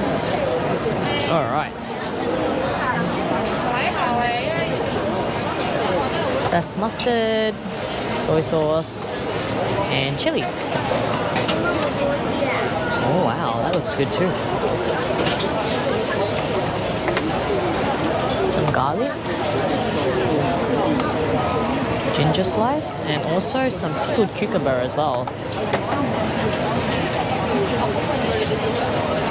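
A crowd chatters all around in a busy, noisy space.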